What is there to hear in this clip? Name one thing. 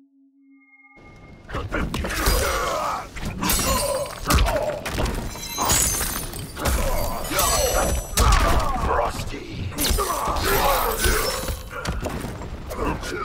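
Fighters clash with heavy thuds, blows and shattering ice.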